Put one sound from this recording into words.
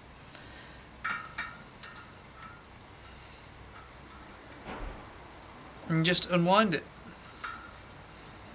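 A metal wrench clinks against a bicycle hub nut.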